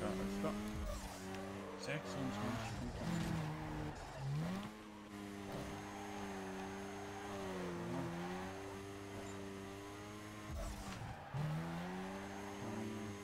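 A sports car engine revs and drops in pitch as the car drifts.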